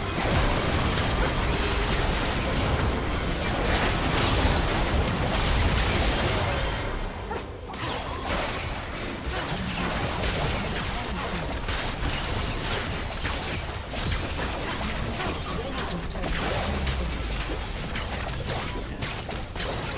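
Spell blasts and weapon clashes from a video game battle crackle and boom nonstop.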